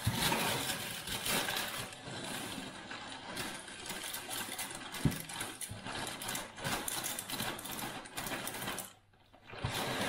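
Cereal flakes rustle and patter as they pour into a bowl.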